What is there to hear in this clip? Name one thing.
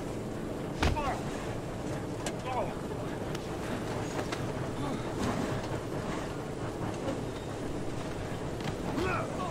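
Blows land with dull thuds.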